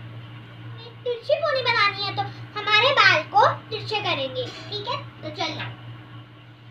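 A young girl talks with animation close by.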